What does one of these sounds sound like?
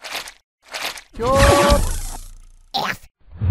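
A laser zaps with a buzzing hum.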